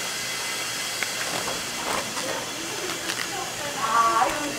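Plastic wrap crinkles and rustles close by.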